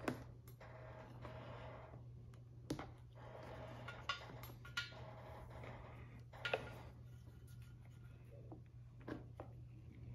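Plastic parts click and knock as hands fit them together.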